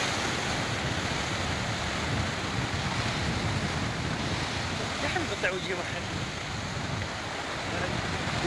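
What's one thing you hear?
Foaming water rushes and hisses between rocks.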